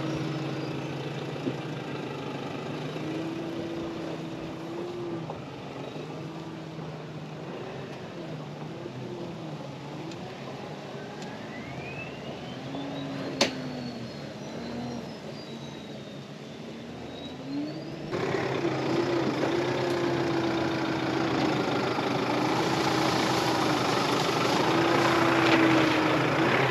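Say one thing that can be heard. Tyres crunch over rock and sand.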